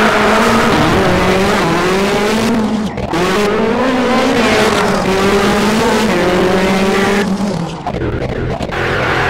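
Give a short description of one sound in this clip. A rally car engine revs hard, rising and falling in pitch as it changes gear.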